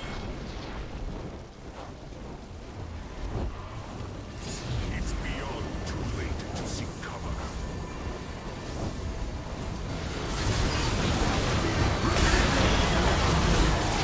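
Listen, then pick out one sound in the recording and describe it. Fiery spinning attacks whoosh and roar.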